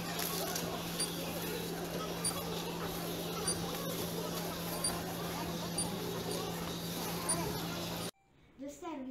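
A busy shop hums with a steady murmur of noise.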